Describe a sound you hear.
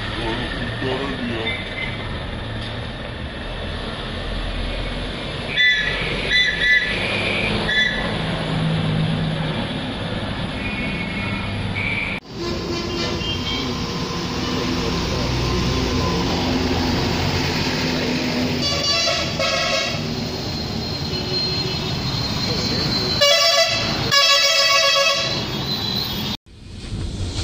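A heavy truck engine rumbles as it drives past.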